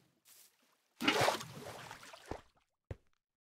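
Water sloshes as a bucket is filled.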